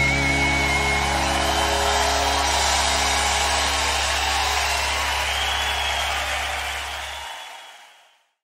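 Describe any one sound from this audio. A large crowd cheers and whistles in a big hall.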